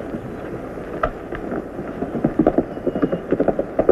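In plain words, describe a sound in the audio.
A horse's hooves clatter as it gallops away on dry ground.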